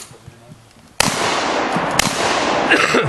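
A shotgun fires loud, sharp shots outdoors.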